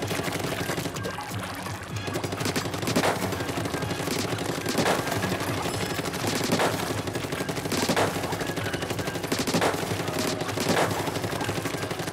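Ink weapon shots splatter in quick bursts.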